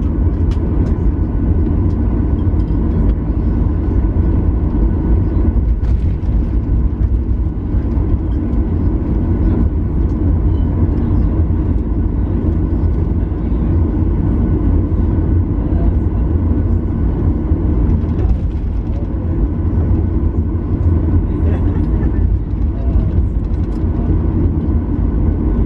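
Jet engines hum with a steady low roar, heard from inside an aircraft cabin.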